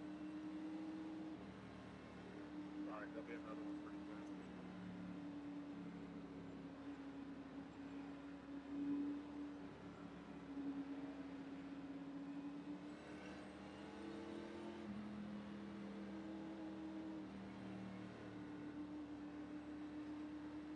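A race car engine drones steadily at low speed.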